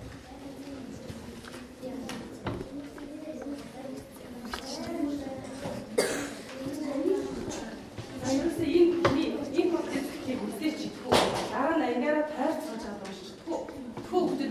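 Children chatter in the background of a room.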